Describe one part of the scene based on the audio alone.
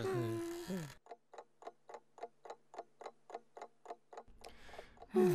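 A wall clock ticks steadily.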